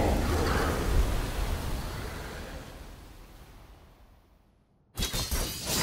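Fiery explosions boom and fade away.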